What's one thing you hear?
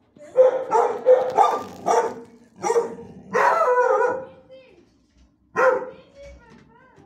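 A dog barks loudly nearby.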